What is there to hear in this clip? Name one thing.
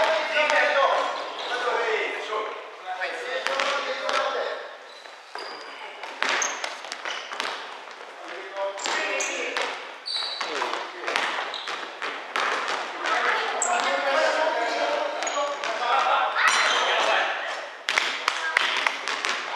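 Young men call out to each other across a large echoing hall.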